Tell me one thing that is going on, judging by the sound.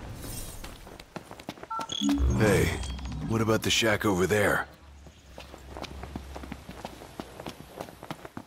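Footsteps run quickly over dirt and gravel.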